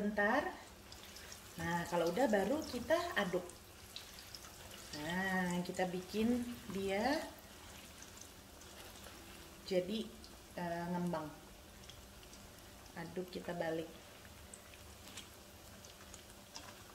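Oil sizzles and crackles steadily in a frying pan.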